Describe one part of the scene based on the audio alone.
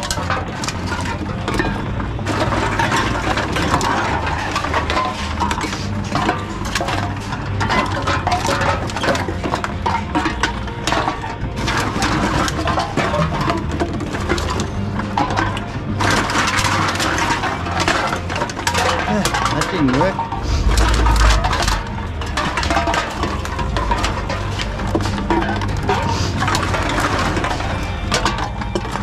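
A recycling machine hums and whirs as it takes in cans.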